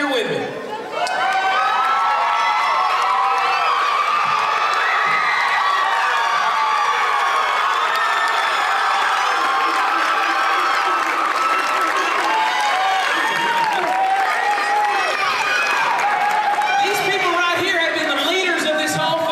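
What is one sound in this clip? A group of young men and women sings loudly together through loudspeakers.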